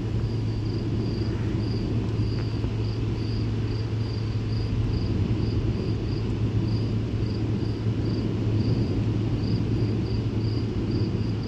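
Thunder rumbles low in the distance.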